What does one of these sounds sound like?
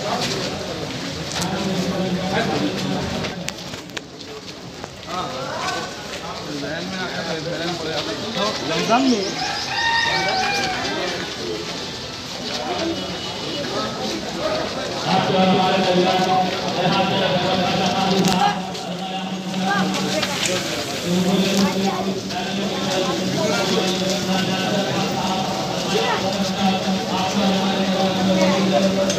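A crowd of men talks and calls out outdoors.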